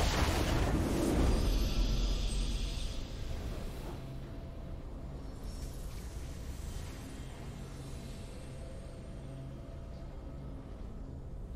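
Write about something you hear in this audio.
A triumphant fanfare swells and fades.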